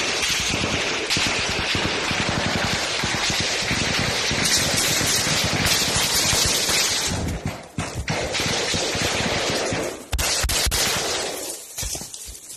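Footsteps crunch quickly through dry leaves.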